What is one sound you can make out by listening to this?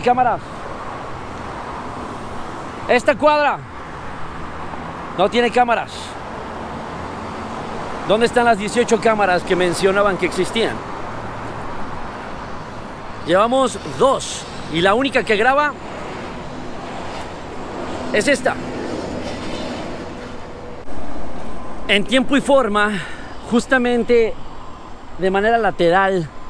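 A young man talks with animation close by, outdoors.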